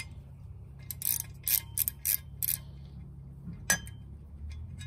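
A ratchet wrench clicks rapidly.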